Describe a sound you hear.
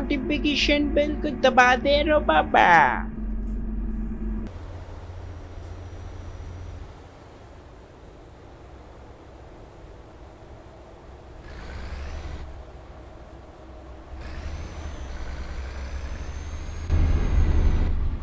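A bus engine hums low and steady.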